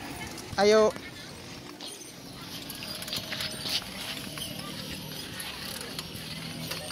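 The wheels of a pedicab roll over paving.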